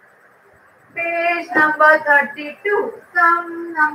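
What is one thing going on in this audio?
A woman speaks clearly and with animation close to the microphone.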